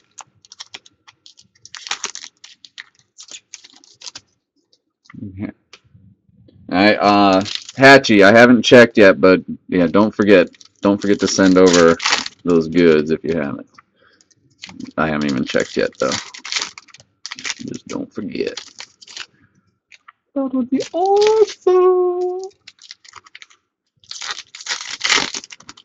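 A foil wrapper crinkles.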